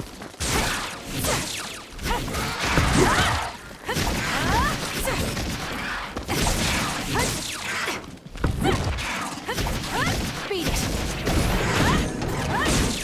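Sword slashes whoosh and clang in quick bursts.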